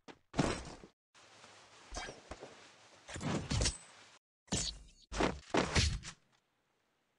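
Short video game sound effects whoosh and chime between rounds.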